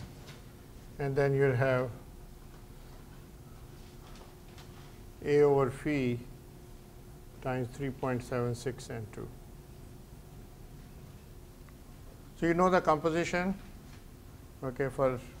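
An elderly man lectures in short bursts.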